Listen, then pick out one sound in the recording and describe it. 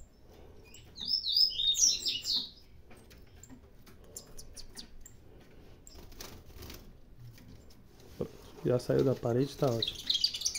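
Canaries chirp and trill close by.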